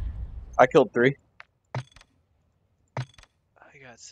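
Short menu clicks sound as options are selected.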